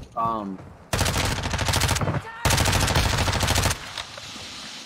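Rapid gunfire rattles loudly in a game.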